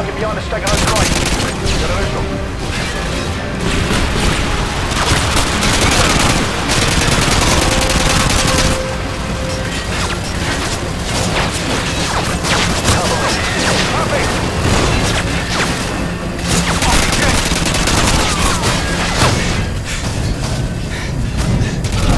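Rifle shots fire again and again, loud and sharp.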